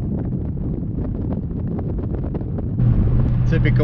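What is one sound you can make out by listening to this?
Wind rushes past outside the car.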